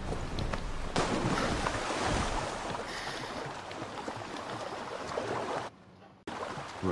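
Water splashes and sloshes as a swimmer paddles through it.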